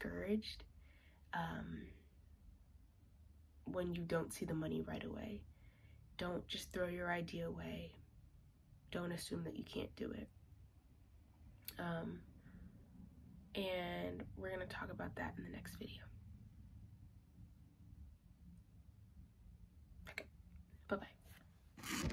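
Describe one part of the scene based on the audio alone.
A young woman talks calmly and close by, with pauses.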